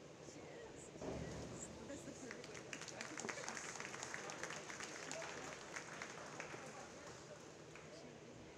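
A crowd cheers and claps in an echoing hall.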